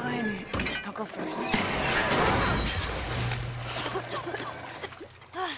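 Heavy wood crashes and scrapes over rocks.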